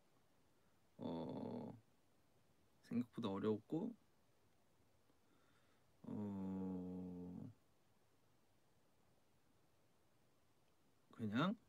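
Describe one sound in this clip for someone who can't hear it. A young man speaks softly and slowly in short phrases close to a microphone.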